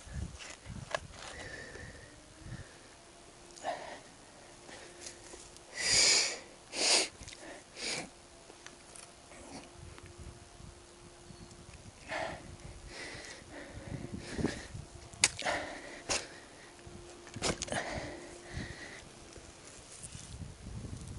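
A shovel scrapes and digs into soil.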